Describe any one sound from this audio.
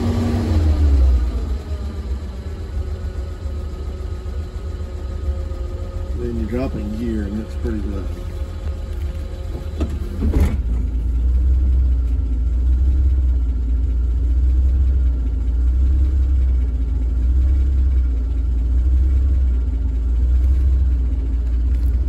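A slant-six engine idles.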